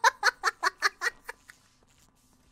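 A young woman laughs loudly in rapid bursts close to a microphone.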